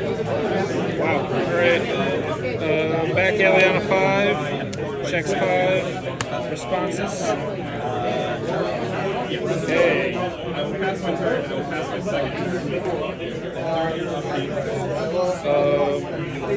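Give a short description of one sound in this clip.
Playing cards are shuffled with a soft rustle.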